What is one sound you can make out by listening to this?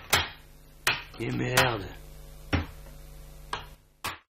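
A wooden plank falls and clatters against a wooden shelf.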